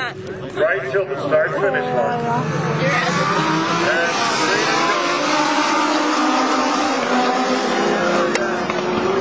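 Race car engines roar loudly as a pack of cars speeds past.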